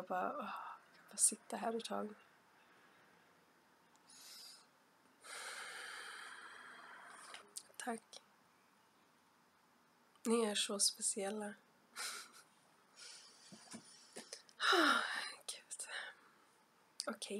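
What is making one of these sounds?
A young woman speaks softly and close to a microphone, in a whisper.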